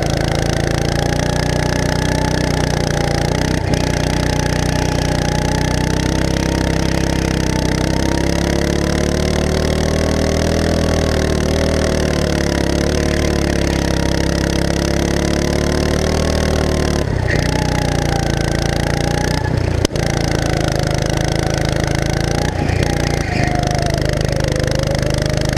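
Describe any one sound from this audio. A go-kart engine drones loudly up close, its pitch rising and falling with speed.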